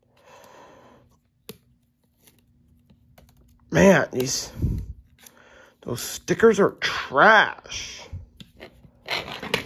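Plastic toy parts click and rattle under fingers.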